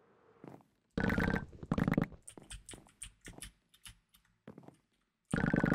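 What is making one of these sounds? Stone blocks crack and crumble as a pickaxe breaks them in a video game.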